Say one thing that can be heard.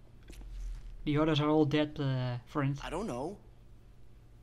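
A man speaks in a deep voice.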